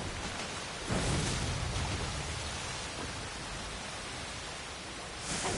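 Flames burst with a loud whoosh.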